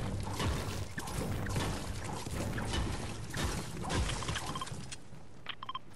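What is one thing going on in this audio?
A pickaxe strikes rock again and again with sharp, ringing knocks.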